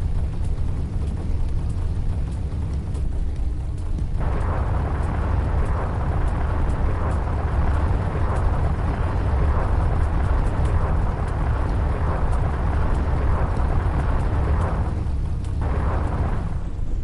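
A spaceship engine rumbles steadily.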